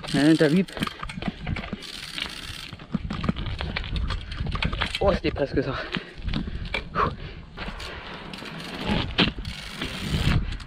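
Bicycle tyres roll over rough, cracked pavement.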